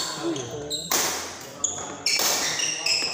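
A racket sharply strikes a shuttlecock in an echoing hall.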